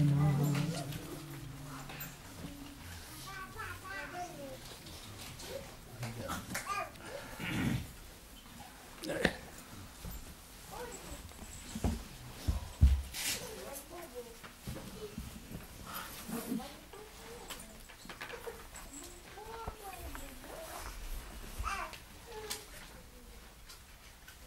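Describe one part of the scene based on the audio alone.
An elderly man speaks softly and slowly through a microphone.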